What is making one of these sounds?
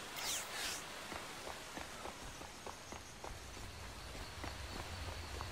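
Soft footsteps tread on rocky ground.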